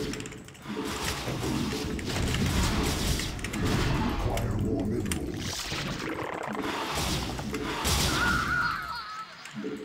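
Game sound effects click and chime.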